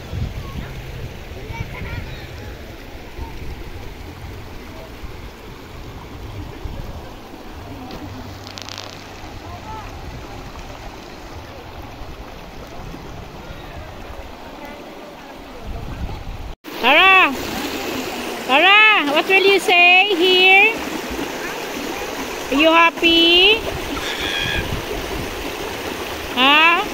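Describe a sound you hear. A shallow stream babbles and splashes over rocks.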